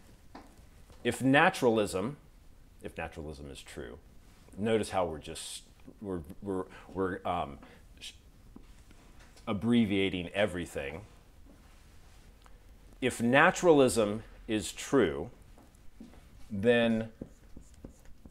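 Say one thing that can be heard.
A man speaks calmly into a clip-on microphone, in bursts with pauses.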